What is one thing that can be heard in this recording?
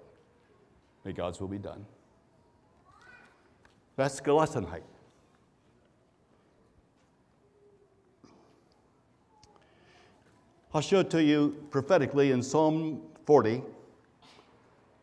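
An elderly man speaks slowly and calmly through a microphone, with long pauses.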